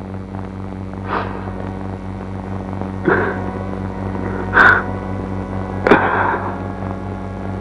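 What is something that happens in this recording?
A man sobs and cries out in short bursts close by.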